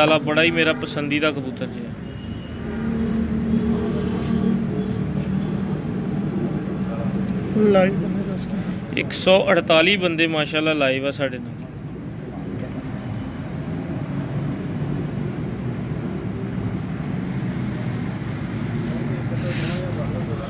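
A pigeon coos softly close by.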